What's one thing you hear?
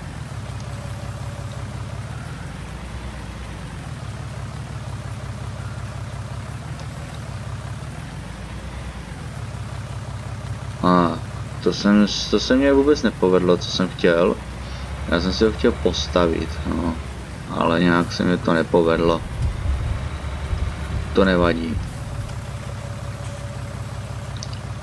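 A tractor engine rumbles steadily, rising and falling slightly in pitch.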